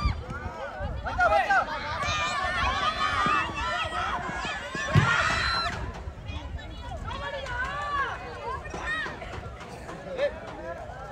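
A crowd of spectators shouts and cheers excitedly outdoors.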